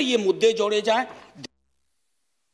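A man speaks with emphasis through a microphone.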